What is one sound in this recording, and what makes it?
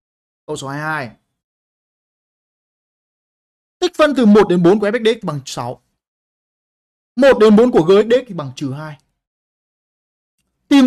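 A young man speaks calmly into a close microphone, in short bursts with pauses.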